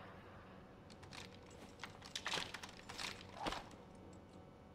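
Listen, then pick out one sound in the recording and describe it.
A handgun clicks as a man twirls it.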